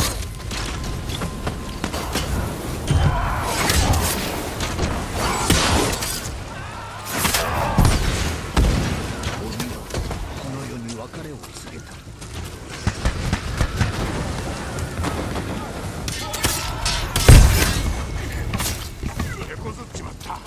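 Swords clash and slash with sharp metallic strikes.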